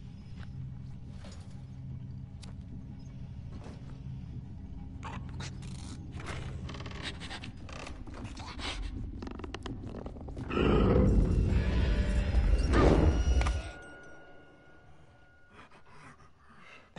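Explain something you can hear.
Small quick footsteps patter on creaking wooden floorboards.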